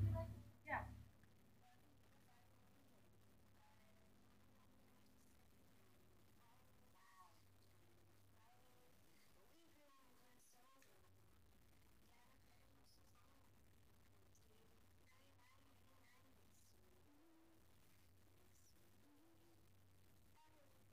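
A young girl speaks faintly into a microphone.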